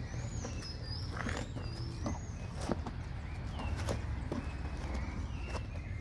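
Footsteps scuff on dry dirt.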